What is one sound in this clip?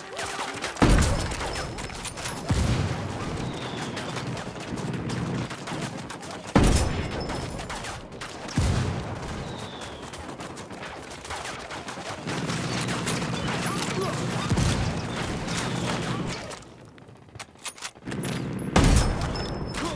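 A rifle fires single loud shots, each with a booming echo.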